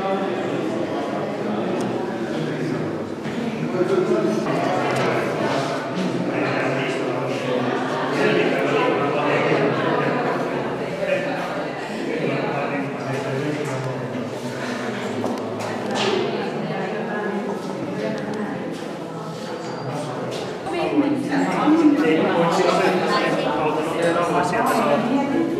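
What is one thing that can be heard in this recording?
A crowd of adults chats and murmurs nearby in an echoing hall.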